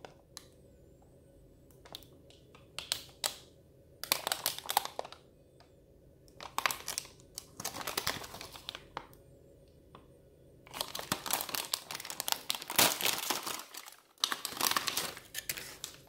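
A plastic snack packet crinkles and rustles in hands.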